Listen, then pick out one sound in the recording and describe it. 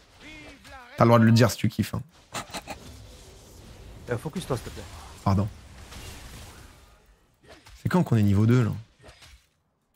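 A young man talks excitedly into a close microphone, sometimes shouting.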